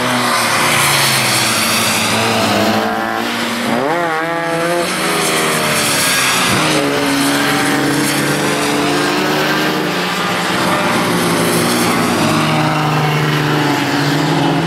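Several race car engines roar and rev loudly nearby.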